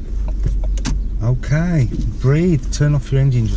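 A woman talks with animation nearby.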